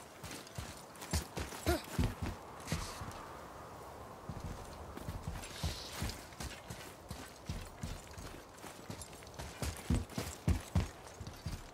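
Heavy footsteps thud on stone.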